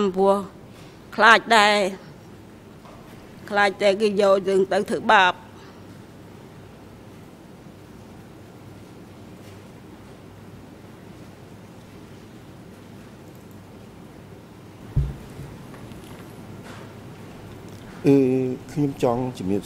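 An elderly woman speaks haltingly into a microphone.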